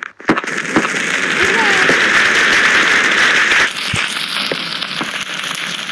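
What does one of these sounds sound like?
Fire crackles and hisses.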